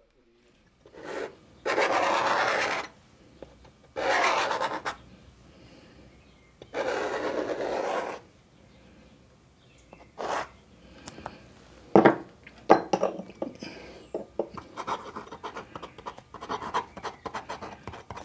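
A pen nib scratches on paper.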